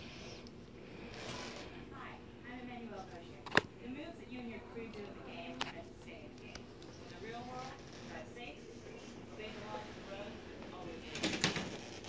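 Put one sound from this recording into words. A woman speaks faintly through a television loudspeaker.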